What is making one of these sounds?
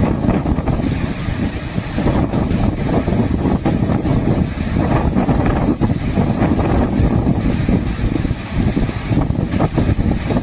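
Rough water surges and churns loudly, roaring steadily.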